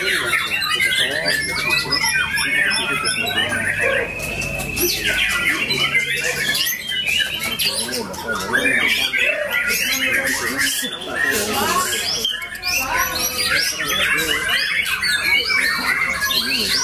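A songbird sings loud, rapid, varied chirps and trills.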